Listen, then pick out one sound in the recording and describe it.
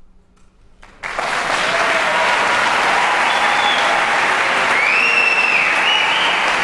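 A mixed choir sings together in a large echoing hall.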